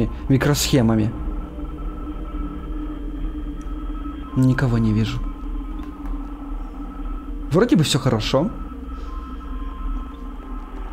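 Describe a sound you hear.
A desk fan hums steadily.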